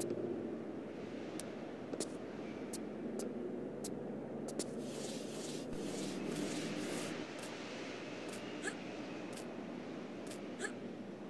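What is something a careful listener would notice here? Hands and feet thud and scuff on a ledge.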